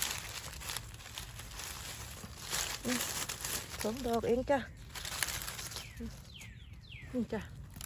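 Dry leaves rustle and crackle as a hand brushes through them.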